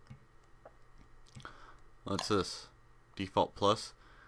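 A game menu clicks as an option is switched.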